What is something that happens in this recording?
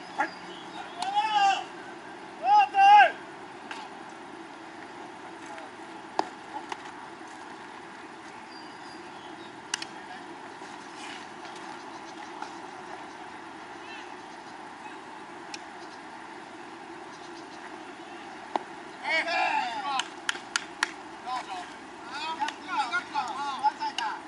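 Young men shout and call out from across an open field.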